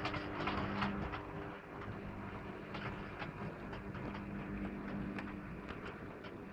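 A model train's motor hums steadily, then fades away.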